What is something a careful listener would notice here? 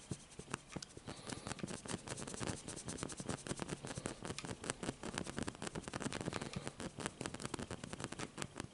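A sparkler crackles and fizzes close by.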